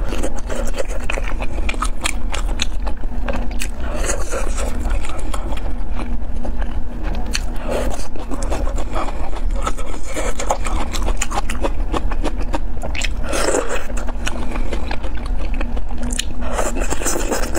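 A woman chews food wetly and loudly close to a microphone.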